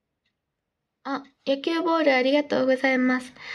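A girl speaks close to the microphone in a high, lively voice.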